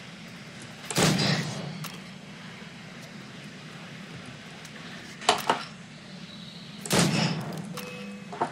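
Guns fire with loud bangs.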